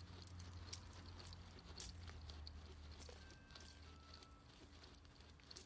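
A dog digs rapidly in loose dirt, paws scratching and scattering soil.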